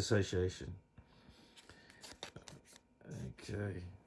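A plastic card clicks and taps as fingers turn it over.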